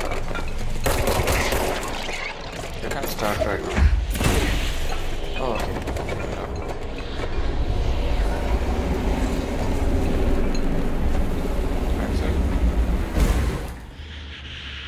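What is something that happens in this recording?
A deep roaring rush of swirling energy rumbles.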